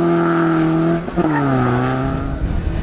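A car backfires with sharp pops.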